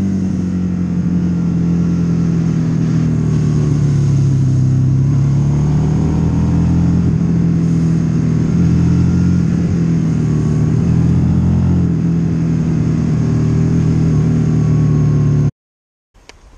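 Wind rushes past loudly.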